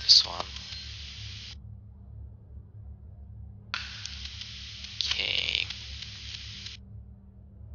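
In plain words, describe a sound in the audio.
Soft menu chimes sound as options are selected.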